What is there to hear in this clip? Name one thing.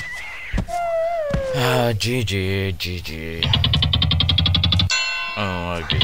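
A short, gloomy tune plays as the game ends.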